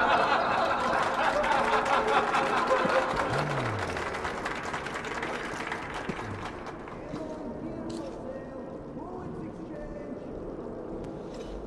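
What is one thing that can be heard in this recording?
Dancers' feet stamp on a wooden stage.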